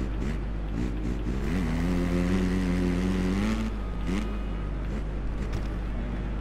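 A motorcycle engine revs up and down, rising and falling in pitch.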